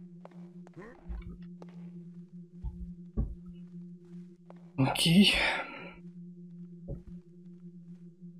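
Heavy footsteps thud now and then on a wooden floor.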